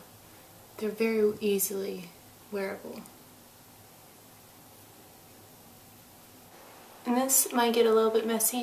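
A young woman talks calmly and close to a microphone.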